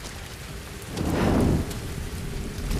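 A torch flame flares up with a whoosh.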